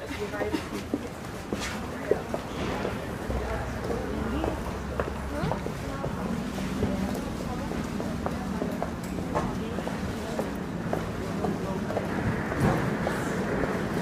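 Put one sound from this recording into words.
Footsteps click and shuffle on a hard floor in a busy crowd.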